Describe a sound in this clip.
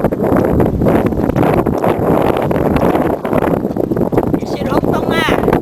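Strong wind gusts and buffets the microphone outdoors.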